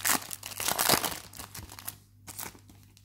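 A foil wrapper crinkles and tears as hands open a pack of cards.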